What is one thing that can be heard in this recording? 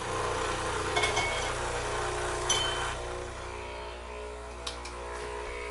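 Metal parts of a coffee machine click and clatter.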